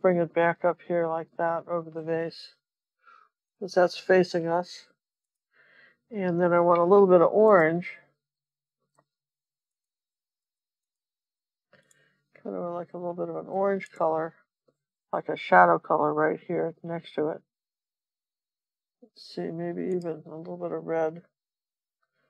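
An older woman talks calmly and close to a microphone, with pauses.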